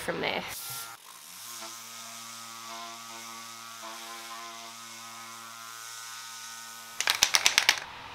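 An electric sander whirs steadily.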